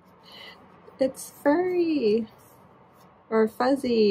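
A young woman speaks close by with animation.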